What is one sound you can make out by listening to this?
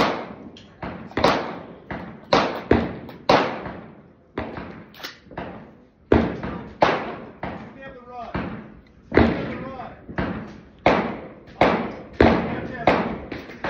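Heavy knocks bang on a door, each ringing out in an echoing space.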